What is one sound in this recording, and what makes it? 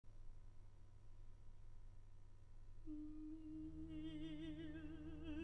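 An orchestra's strings play low, sustained notes.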